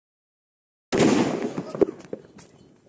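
A firecracker bangs loudly outdoors and the sound fades.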